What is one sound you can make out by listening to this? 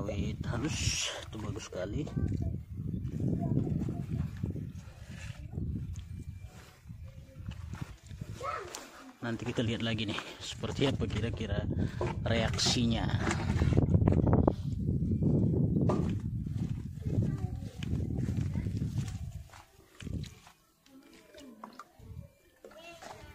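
Muddy water pours from a bucket and splashes onto soil.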